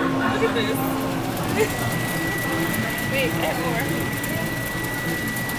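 Arcade game machines play busy electronic music and beeps.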